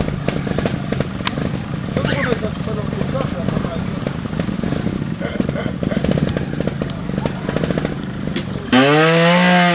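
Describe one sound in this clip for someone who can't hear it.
A motorcycle engine putters and idles close by.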